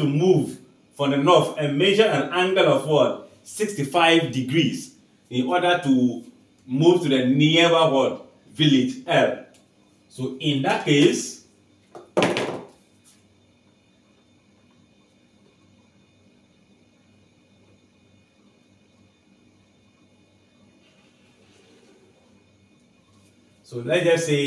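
A man explains calmly and clearly into a close microphone.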